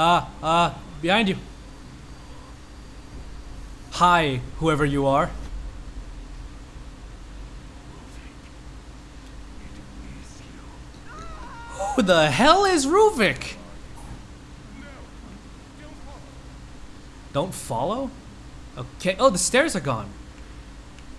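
A middle-aged man speaks in a frightened, strained voice, crying out at times.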